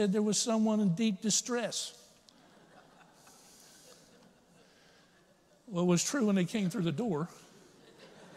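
A middle-aged man speaks with animation through a microphone in a large echoing hall, pausing between phrases.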